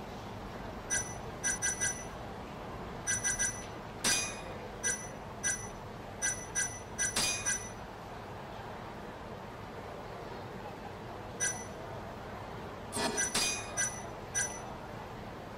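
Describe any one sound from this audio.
Short electronic menu blips sound as selections change.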